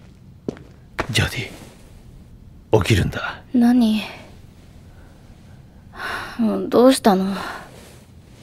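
A man speaks softly and hesitantly close by.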